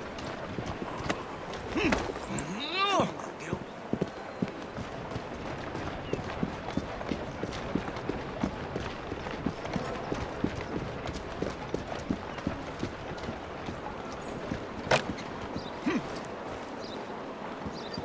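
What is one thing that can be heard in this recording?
Horse hooves clop on a cobbled street nearby.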